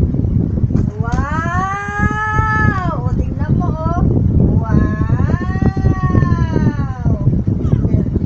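A baby makes long, high, sing-song cries.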